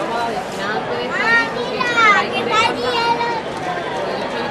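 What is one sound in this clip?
Young girls call out in high voices nearby.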